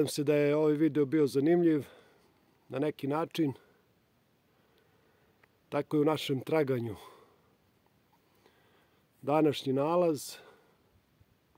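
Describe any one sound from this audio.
A middle-aged man talks calmly and close by, in short bursts.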